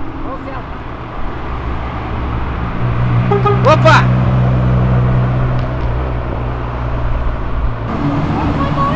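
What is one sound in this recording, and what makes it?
A car engine rumbles loudly as a car drives past.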